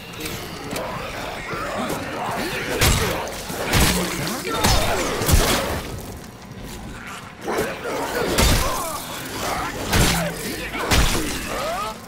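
Creatures growl and shriek close by.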